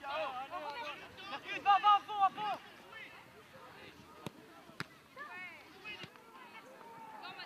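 Young players shout to each other across an open field.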